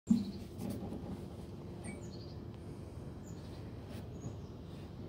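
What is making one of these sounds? An acoustic guitar is strummed, ringing softly.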